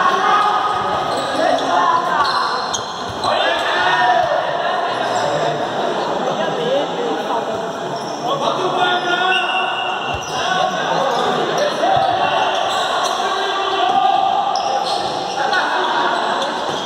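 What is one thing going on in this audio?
Men shout and call out loudly in an echoing indoor space.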